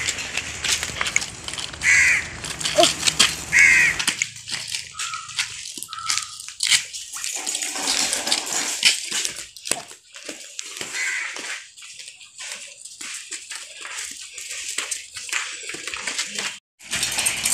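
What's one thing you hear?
Footsteps scuff on a dirt path.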